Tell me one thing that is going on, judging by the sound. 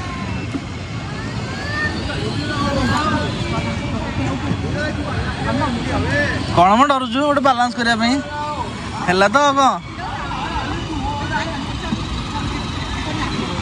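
People chatter in the background outdoors.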